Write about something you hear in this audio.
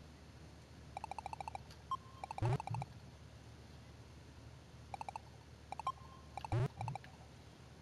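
Beeping game sounds play in quick bursts as a ball is caught.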